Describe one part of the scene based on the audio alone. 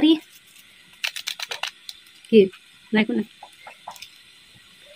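A plastic packet rustles and crinkles.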